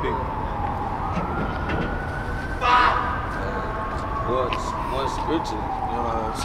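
A man speaks calmly nearby outdoors.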